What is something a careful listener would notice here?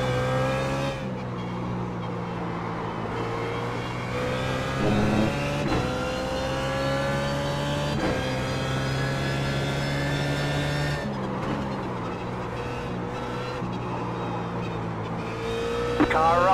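A racing car engine roars, rising and falling in pitch as it shifts gears.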